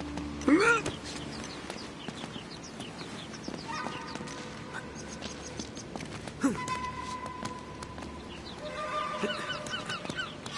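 Hands and feet scrape and tap on stone.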